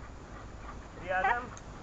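A man calls out commands to a dog outdoors.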